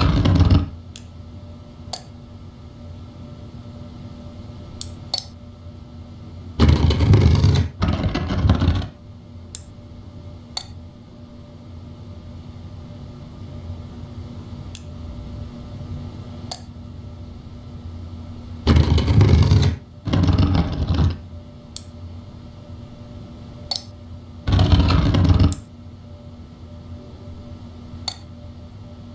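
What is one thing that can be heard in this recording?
Small pieces click into place.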